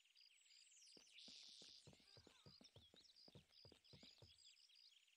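Footsteps thud steadily on the ground.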